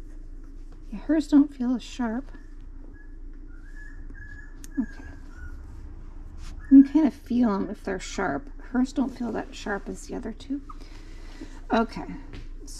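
A puppy whines and squeals up close.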